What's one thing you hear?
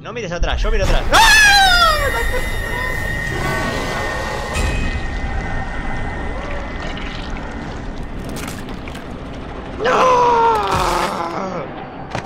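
A young man screams in fright close to a microphone.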